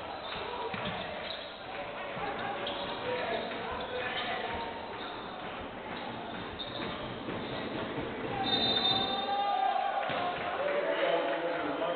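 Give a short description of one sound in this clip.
A crowd murmurs and cheers in a large echoing hall.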